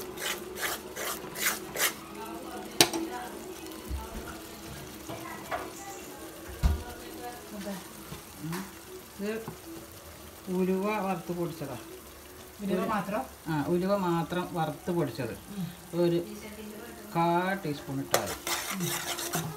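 A thick sauce sizzles and bubbles in a pan.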